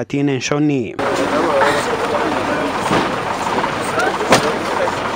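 A crowd of men murmur and call out close by outdoors.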